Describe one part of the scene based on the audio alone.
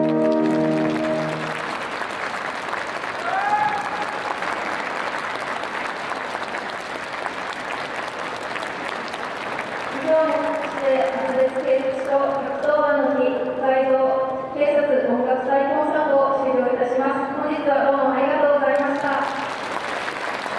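A brass band plays a piece in a large echoing hall.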